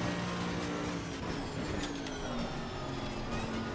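A racing car engine drops in pitch as the car brakes hard.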